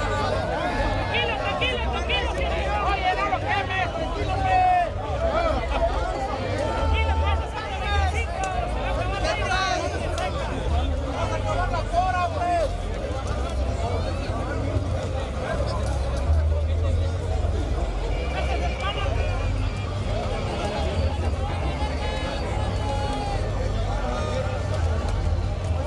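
A crowd of men and women chatters and calls out nearby, outdoors.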